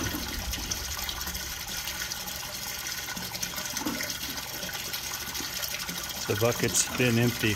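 Water trickles steadily from a hose into a tub.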